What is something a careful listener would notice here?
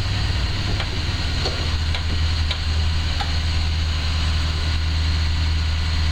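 An electric motor hums low and steadily.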